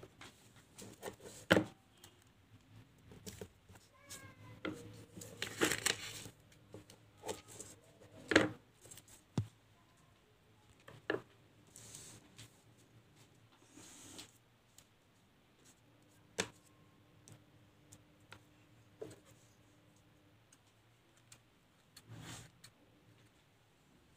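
Paper rustles and crinkles under hands.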